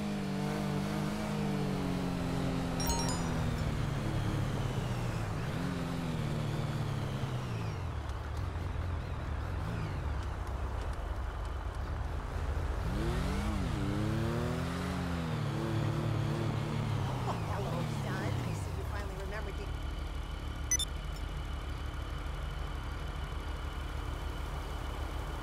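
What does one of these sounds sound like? A motorcycle engine revs up and down, then settles to a steady low idle.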